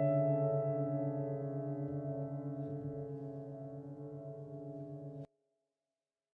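A held piano chord rings softly, fading slowly before cutting off abruptly.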